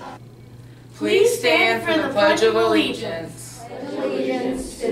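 A teenage girl talks cheerfully.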